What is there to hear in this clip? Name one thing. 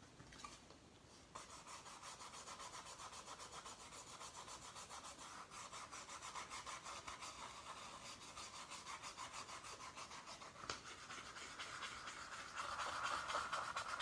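A paintbrush softly brushes across a wooden surface.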